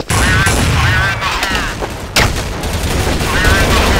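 A grenade is tossed and clatters to the ground.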